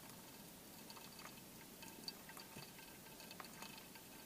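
Hot water trickles softly from a kettle into a coffee filter.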